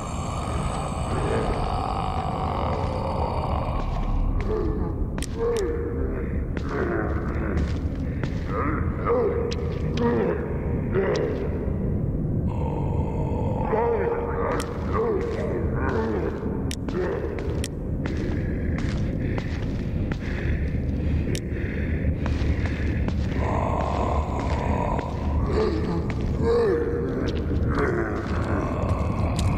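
Footsteps creep softly across a hard floor.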